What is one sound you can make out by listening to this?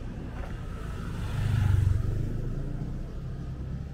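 A motor scooter's engine revs as it rides close by.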